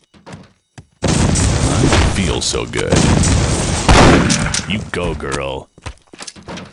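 A grenade explodes with a loud, rumbling blast.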